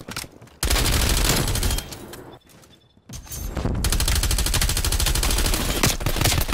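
A rapid-fire rifle shoots in fast bursts, loud and close.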